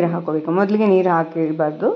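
Water pours into a metal jar.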